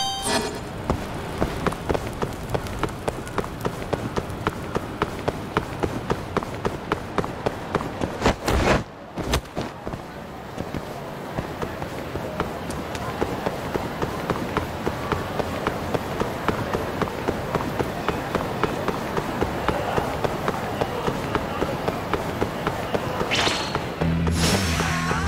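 Quick footsteps of someone running slap on pavement.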